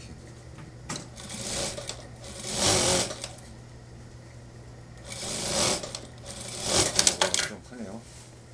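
Fabric rustles and swishes as hands move and fold a garment.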